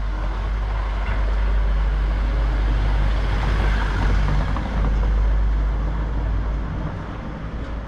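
A car engine idles nearby with a low rumble.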